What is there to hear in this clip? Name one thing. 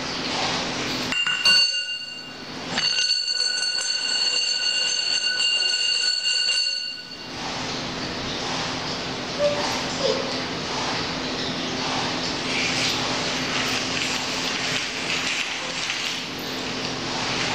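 Plastic wheels of a baby walker roll and rattle over a hard tiled floor.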